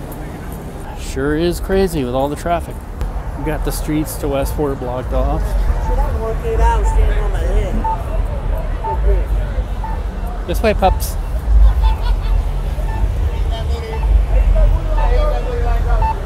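A crowd of young men and women shout and talk loudly outdoors.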